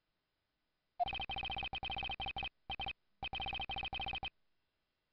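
Rapid electronic blips chatter as game text is typed out, with short pauses.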